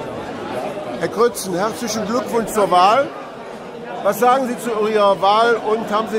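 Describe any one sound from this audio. A middle-aged man speaks close by with animation.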